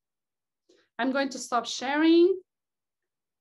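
A young woman speaks briefly and warmly over an online call.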